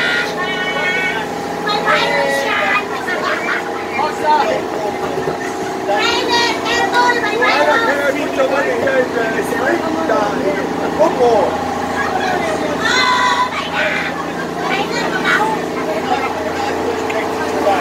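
A group of adults laugh and cheer loudly close by.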